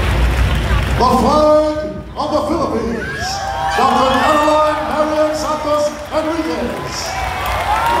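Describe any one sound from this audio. A crowd sings together loudly.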